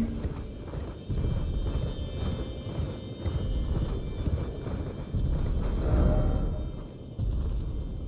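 Hooves pound rhythmically as a horse gallops over snow.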